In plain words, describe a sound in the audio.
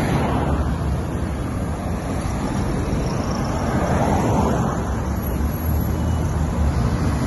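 Car traffic rumbles past on a busy road outdoors.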